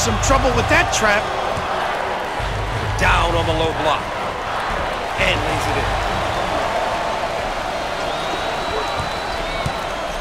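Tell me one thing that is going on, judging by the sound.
A large crowd cheers and murmurs steadily in a big echoing arena.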